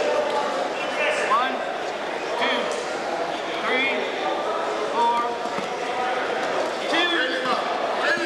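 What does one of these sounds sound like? Wrestlers' shoes squeak on a mat.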